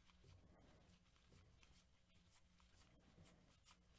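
Cards slide and tap against each other as they are shuffled.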